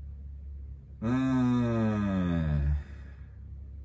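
A young man lets out a long drawn-out exclamation.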